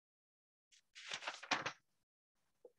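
A book page turns with a papery rustle.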